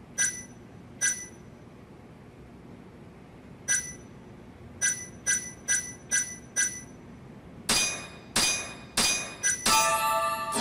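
Short, bright electronic menu beeps tick again and again, faster toward the end.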